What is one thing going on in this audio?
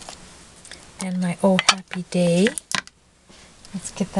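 A small plastic case is set down on a table with a light knock.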